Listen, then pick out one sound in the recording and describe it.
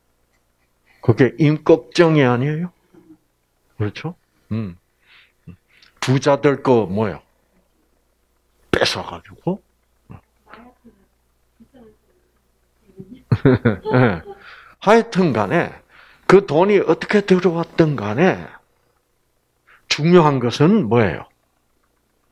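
An elderly man speaks calmly into a microphone, heard through a loudspeaker, with pauses.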